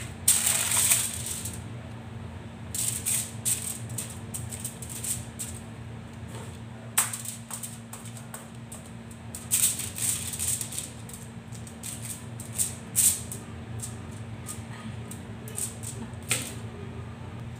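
Aluminium foil crinkles and rustles as hands press it.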